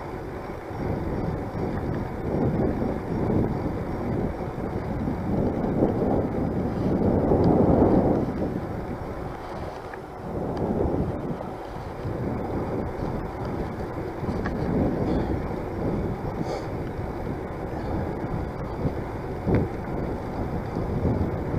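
Wind buffets a microphone outdoors in gusts.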